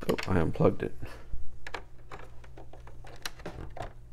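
A cable plug clicks into a socket.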